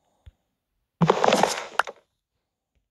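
A block breaks with a short crunching burst.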